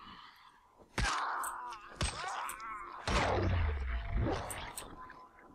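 A creature groans and snarls close by.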